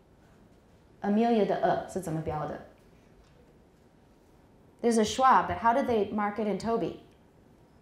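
A middle-aged woman speaks into a microphone, reading out in two short bursts with pauses.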